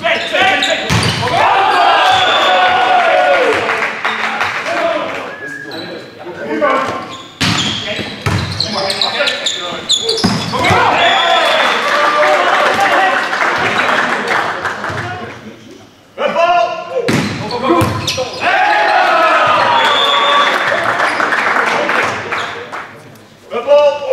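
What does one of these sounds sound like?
A crowd cheers and shouts in an echoing hall.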